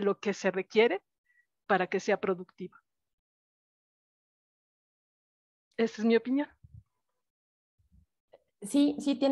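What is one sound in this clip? A middle-aged woman speaks with animation in short bursts, close to a microphone.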